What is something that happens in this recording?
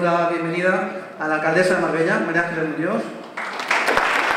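A middle-aged man speaks calmly and clearly, as if addressing an audience.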